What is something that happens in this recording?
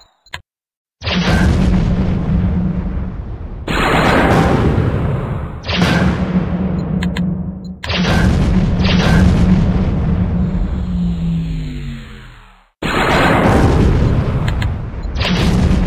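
Robots blast each other with loud, booming weapon fire.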